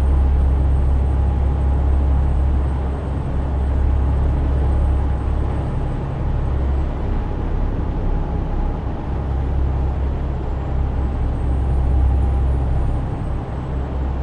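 A truck engine drones low and steady while driving.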